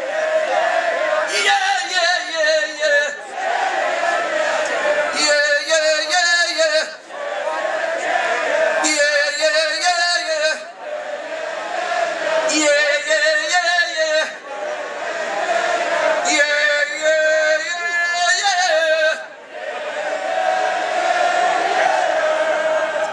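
A large crowd cheers and sings back.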